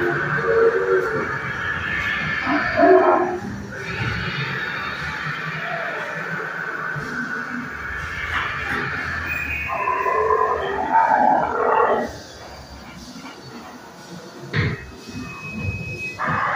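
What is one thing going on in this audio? A dinosaur model roars loudly through a loudspeaker.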